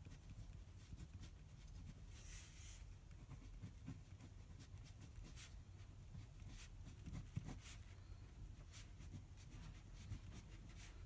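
A felt-tip pen squeaks and scratches on paper.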